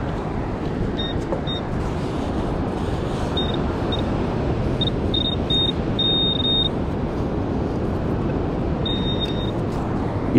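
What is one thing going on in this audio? A handheld pinpointer beeps with short high chirps.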